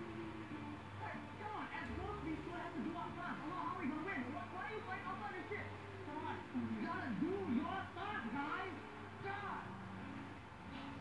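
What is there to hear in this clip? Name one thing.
A young man talks with animation through a television speaker.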